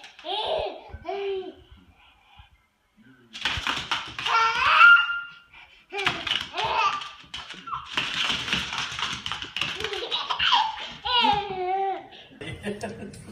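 A baby squeals and giggles.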